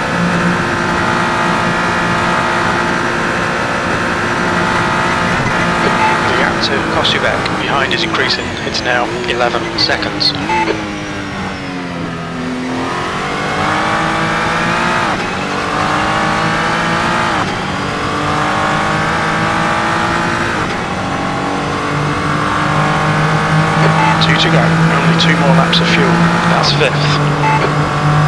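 A race car engine roars loudly, its pitch rising and falling with each gear change.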